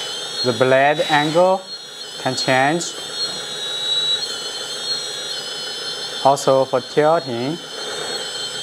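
A toy bulldozer's sound unit plays engine revs in short bursts.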